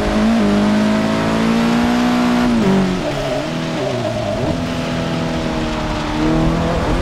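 Rain patters on a car windscreen.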